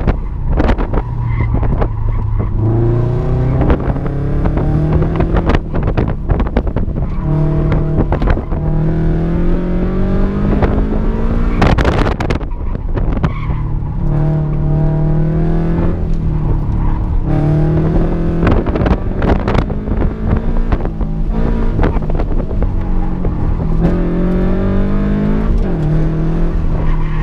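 A car engine revs hard, rising and falling as gears change.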